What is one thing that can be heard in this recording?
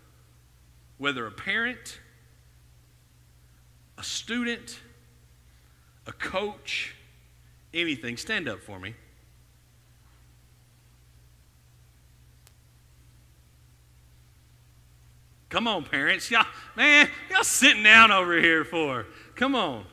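A man speaks through a microphone in short phrases, with pauses.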